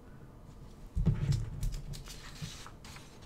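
Paper rustles as a sheet is flipped over.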